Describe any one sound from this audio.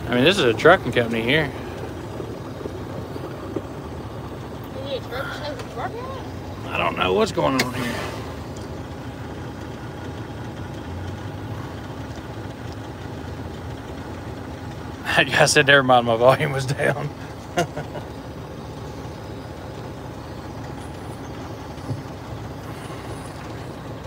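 A truck engine idles with a steady low rumble.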